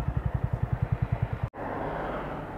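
A motorcycle engine idles with a fast, steady putter.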